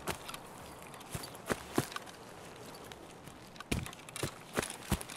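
Footsteps crunch on grass and rock.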